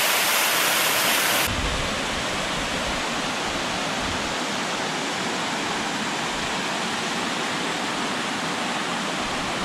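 Water rushes and splashes loudly close by.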